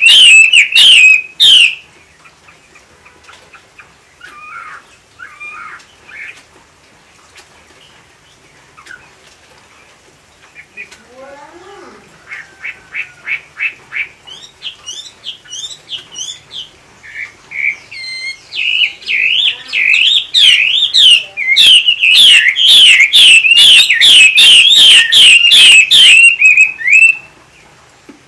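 A caged bird sings loud, rapid, chattering phrases close by.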